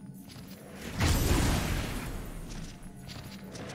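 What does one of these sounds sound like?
A loud magical blast bursts and rings out.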